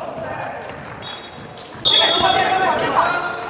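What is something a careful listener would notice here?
Sneakers squeak sharply on a hard court floor.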